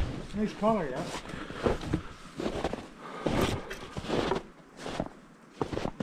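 Boots crunch on packed snow.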